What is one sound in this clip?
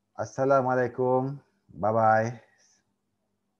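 A man speaks briefly and calmly into a microphone.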